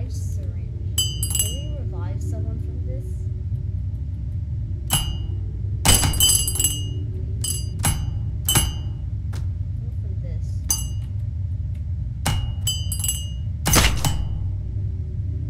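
A small object drops and clinks sharply several times.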